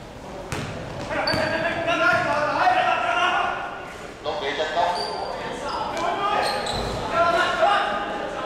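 Young men shout to each other during play.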